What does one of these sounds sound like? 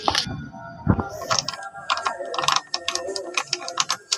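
A key rattles and clicks in a door lock.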